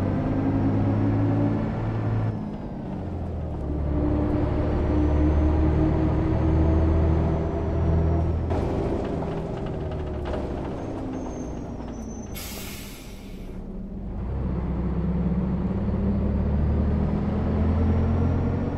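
A bus engine hums low and steadily, rising and falling in pitch as it drives.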